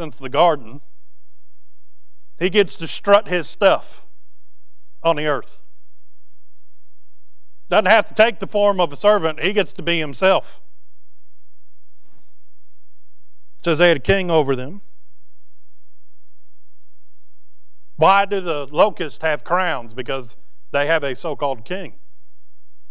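A man speaks calmly into a microphone, in short phrases with pauses.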